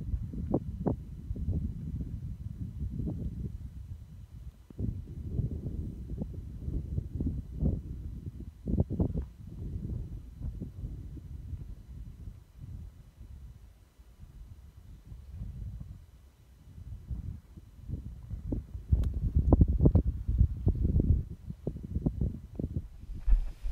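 Wind gusts rumble against the microphone outdoors.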